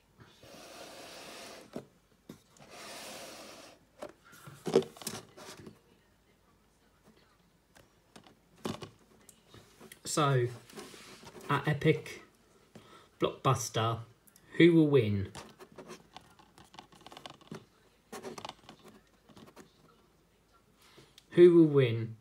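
A plastic case rustles and clicks in a hand.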